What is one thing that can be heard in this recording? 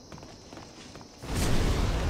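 A fireball whooshes.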